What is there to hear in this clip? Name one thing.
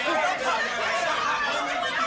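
A woman cries out in shock.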